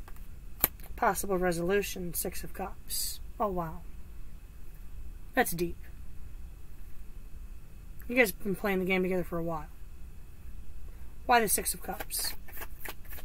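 A woman speaks calmly, close by, in short phrases.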